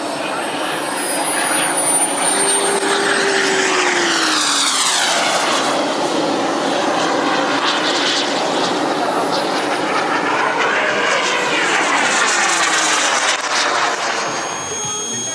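A model jet engine roars loudly as a jet flies past, its whine sweeping up and down.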